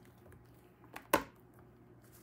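A stamp knocks down onto a desk.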